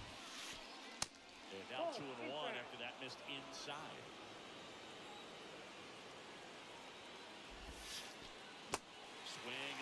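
A baseball smacks sharply into a catcher's mitt.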